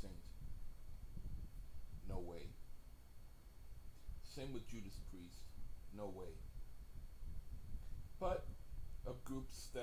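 A middle-aged man speaks slowly and quietly, close by, in short bursts.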